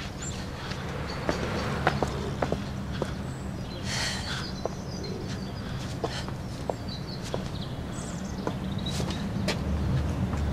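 Footsteps crunch through plants and over a path.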